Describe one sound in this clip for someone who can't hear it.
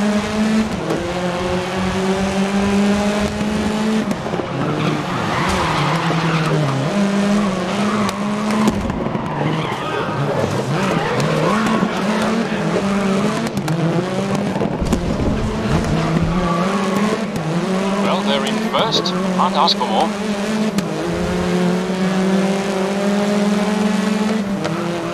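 A racing car engine roars and shifts through gears.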